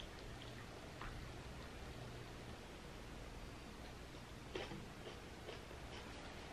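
A fork clinks lightly against a plate.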